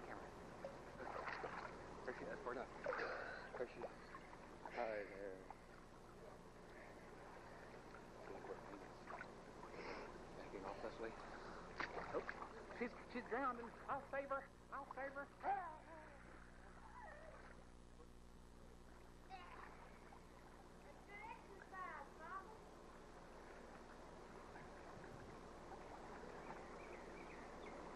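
Water splashes and laps in an outdoor pool.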